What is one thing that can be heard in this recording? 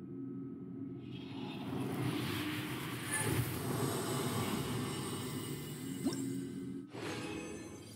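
A magical shimmer swells and whooshes.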